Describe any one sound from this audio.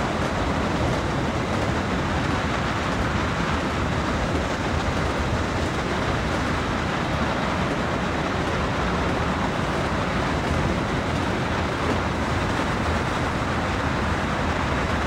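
Train wheels roll steadily along the rails.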